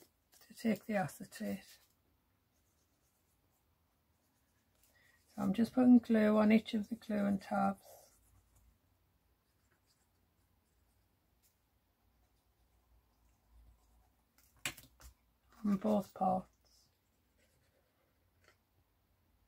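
Stiff paper rustles and creases as it is folded.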